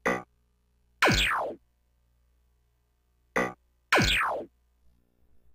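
A falling electronic swoosh sounds twice.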